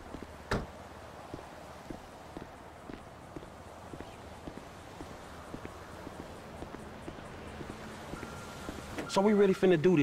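Footsteps crunch on gravel at a walking pace.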